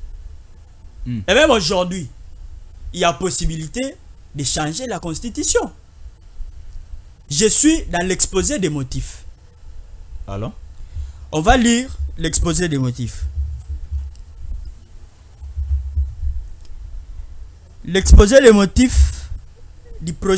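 A young man speaks forcefully into a microphone in short bursts.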